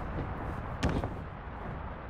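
A heavy foot stomps down onto a wrestling ring mat with a thud.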